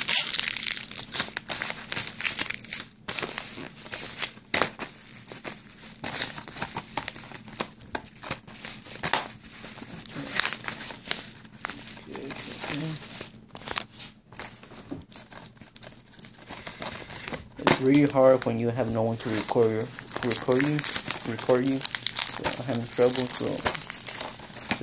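A paper envelope rustles and crinkles as it is handled.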